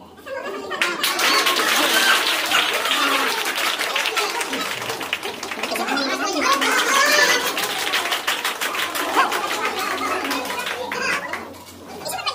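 A crowd claps hands rapidly.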